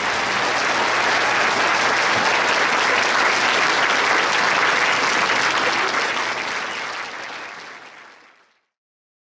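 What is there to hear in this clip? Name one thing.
A large audience applauds loudly in a big hall, and the applause fades away.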